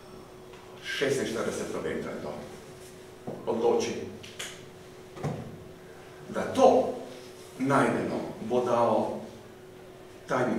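A middle-aged man speaks calmly in bursts, close by in a small room.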